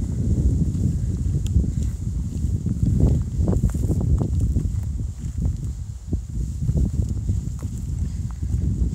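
Footsteps crunch through dry leaves on a forest trail.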